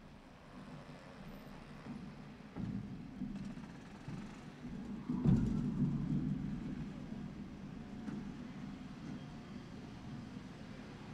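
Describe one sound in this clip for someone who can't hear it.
Race car engines rumble at a distance outdoors, revving hard at times.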